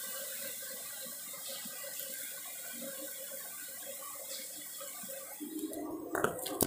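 Oil sizzles and crackles as food fries in a pan.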